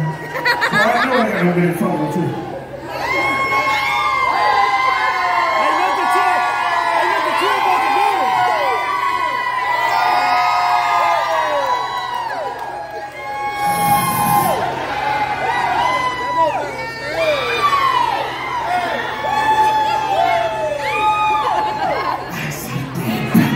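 Music with a deep bass plays loudly over loudspeakers.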